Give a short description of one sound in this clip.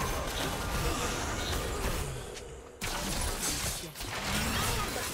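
Game combat hits clash and thud repeatedly.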